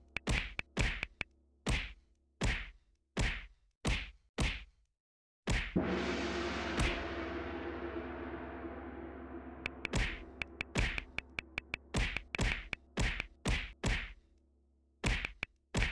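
Sharp punching hits land over and over in quick bursts.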